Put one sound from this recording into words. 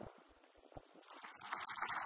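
An elderly man claps his hands.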